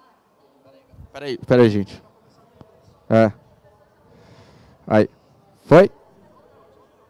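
A man speaks loudly in short bursts through a microphone in a large hall.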